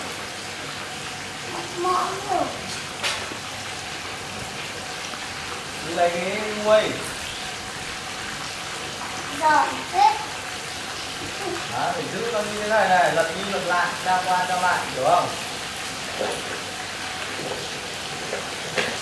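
Oil sizzles in a frying pan.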